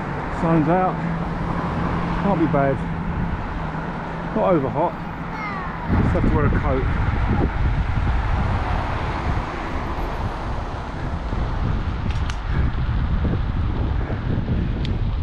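A motorcycle engine hums steadily and shifts in pitch.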